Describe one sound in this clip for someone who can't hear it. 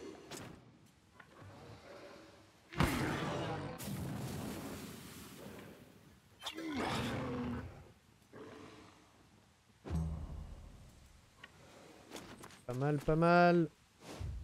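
A blade strikes flesh with a sharp slash.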